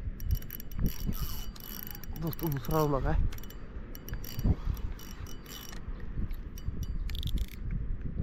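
A fishing reel clicks and whirs as it is wound.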